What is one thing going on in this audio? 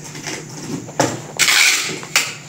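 Plastic rustles and crinkles as a man packs parcels.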